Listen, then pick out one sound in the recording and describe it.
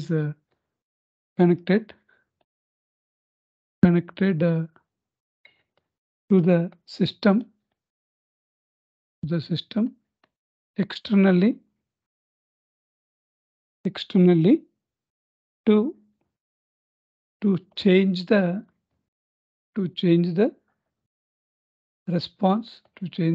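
A man speaks slowly and calmly into a close microphone, with long pauses.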